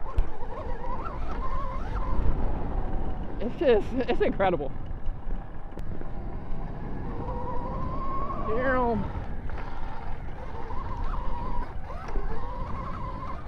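Knobby tyres rumble over bumpy grass and dirt.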